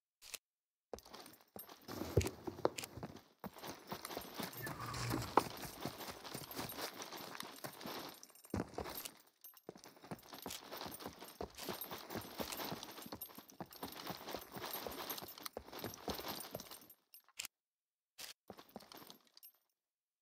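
Footsteps tread over ground and hard floors.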